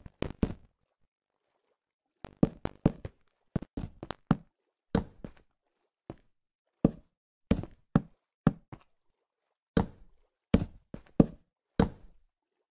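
Footsteps patter in short bursts.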